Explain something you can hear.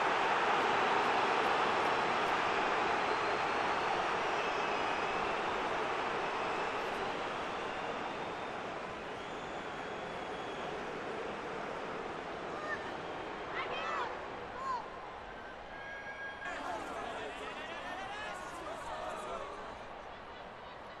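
A large stadium crowd roars steadily, then slowly fades.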